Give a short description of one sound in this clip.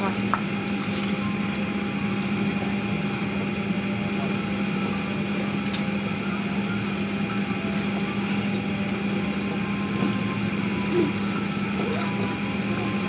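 A jet airliner's engines whine and rumble steadily as it taxis nearby.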